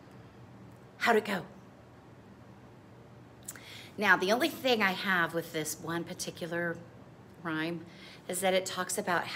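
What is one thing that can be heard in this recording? A middle-aged woman speaks with animation, close by.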